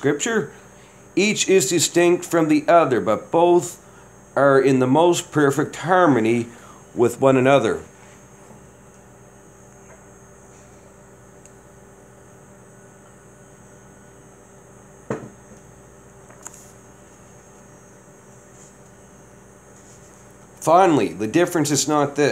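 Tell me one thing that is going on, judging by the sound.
A man reads aloud calmly, close by.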